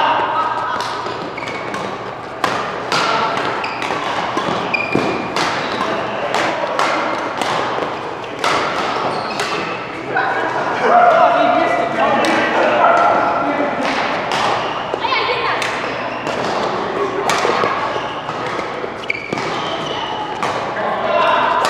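Rackets smack a shuttlecock in quick rallies, echoing in a large hall.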